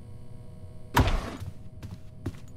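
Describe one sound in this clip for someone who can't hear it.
A wooden drawer slides shut.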